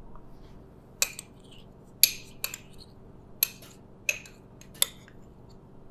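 Something knocks sharply against a metal bowl several times.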